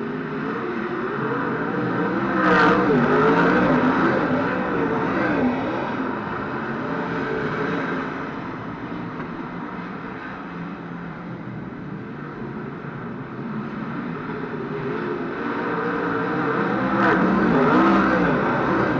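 Racing cars roar around a dirt track, their engines revving up and down.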